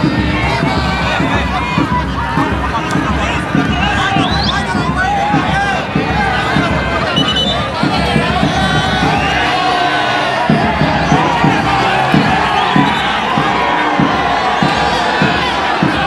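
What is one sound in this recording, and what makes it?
A large crowd of spectators chatters and shouts outdoors.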